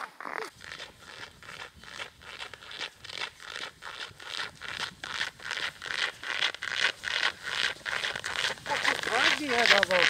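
Footsteps crunch on snow, drawing closer and louder.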